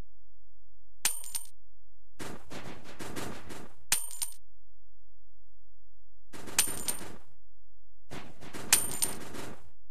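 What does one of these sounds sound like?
Bright chimes ring as coins are picked up.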